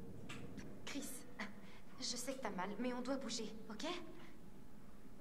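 A young woman speaks quietly and tensely nearby.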